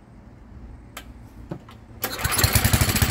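A starter cord is pulled on a small engine.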